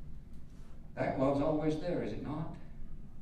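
An elderly man speaks calmly into a microphone in a softly echoing room.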